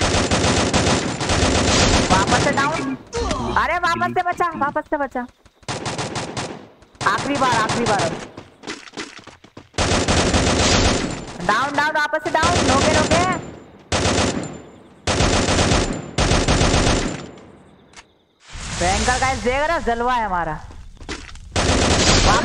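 Rapid bursts of rifle gunfire ring out close by.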